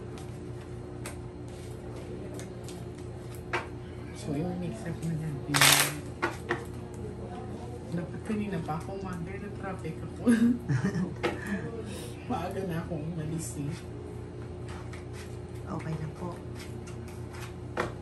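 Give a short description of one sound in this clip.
Cards shuffle and flick in a woman's hands.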